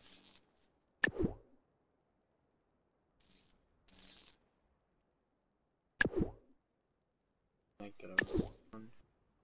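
Blocks snap into place with sharp clicks.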